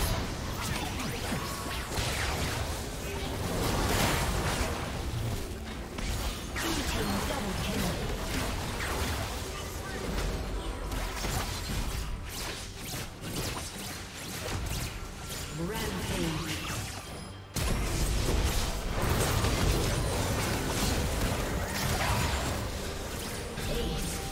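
Spell effects and combat sounds of a video game blast and clash.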